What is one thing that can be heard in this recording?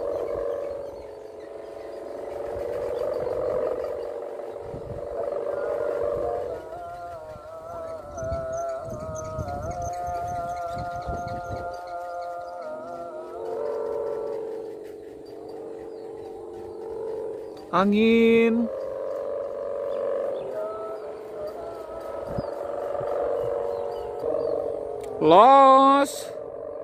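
A kite's hummer drones overhead in the wind, wavering in pitch.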